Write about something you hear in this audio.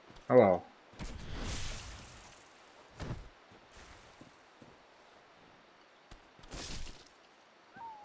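A sword whooshes and strikes.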